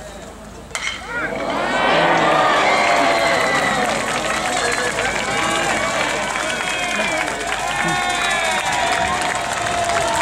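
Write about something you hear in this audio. A crowd cheers and shouts loudly outdoors.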